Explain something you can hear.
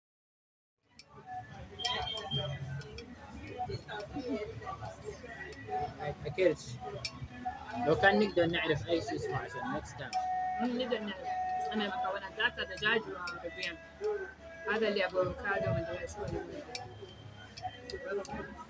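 Chopsticks click against plates.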